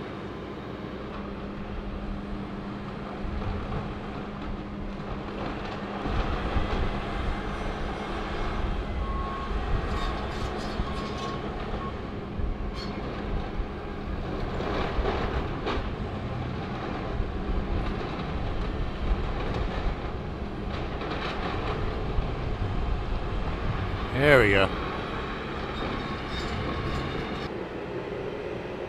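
A diesel excavator's engine rumbles as it works.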